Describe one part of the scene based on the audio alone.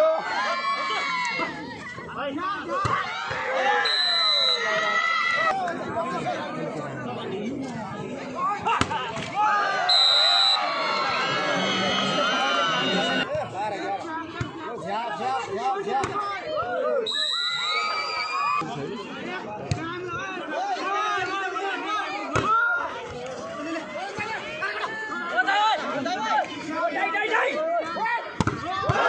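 A large crowd shouts and cheers loudly outdoors.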